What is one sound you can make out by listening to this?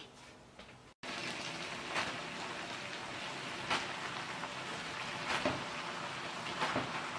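Food sizzles in a hot frying pan.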